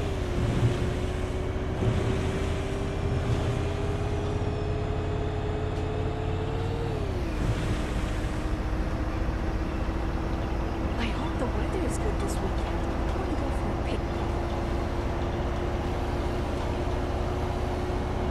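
A bus engine drones steadily, its pitch rising slowly and then dropping as the gear changes.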